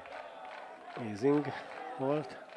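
A man shouts loudly from close by.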